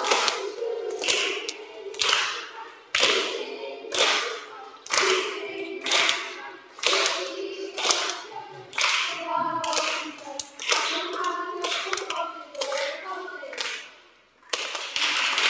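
A choir of children sings together in a large echoing hall.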